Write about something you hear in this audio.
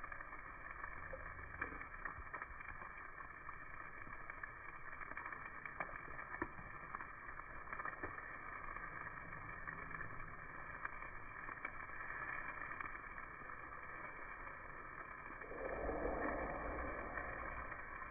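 Metal tongs click against a grill grate.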